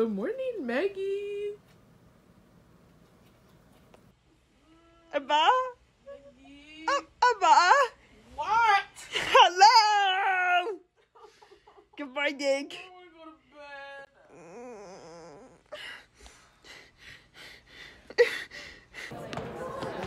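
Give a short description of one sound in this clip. A young woman talks in a high, wavering voice close by.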